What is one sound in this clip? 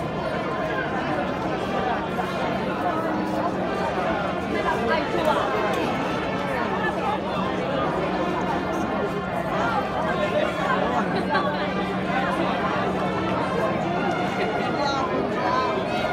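A large outdoor crowd chatters and murmurs all around.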